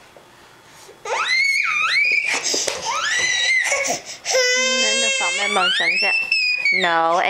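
A toddler whines and cries loudly close by.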